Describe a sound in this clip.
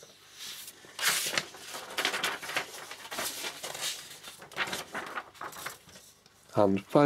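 Paper pages rustle and slide as they are turned over.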